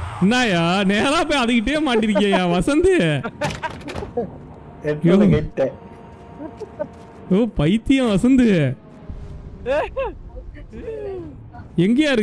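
A young man laughs into a close microphone.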